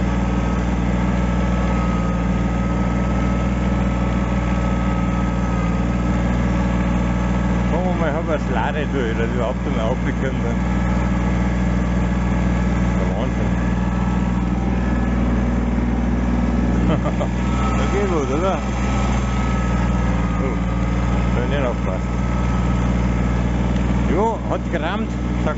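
A snowmobile engine roars steadily up close.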